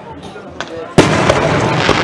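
A firework bursts with a loud bang.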